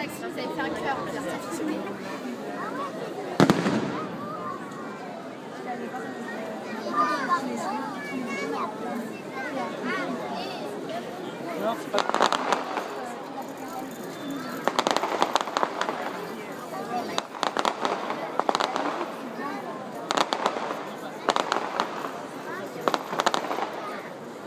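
Aerial fireworks bang and crackle overhead.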